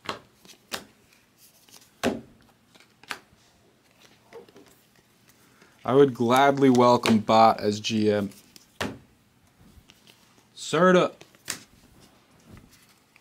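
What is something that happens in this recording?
Trading cards shuffle and flick against each other in a man's hands.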